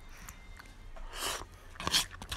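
A young woman slurps food close by.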